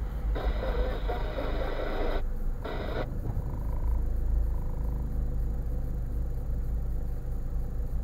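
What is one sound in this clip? A car engine idles quietly.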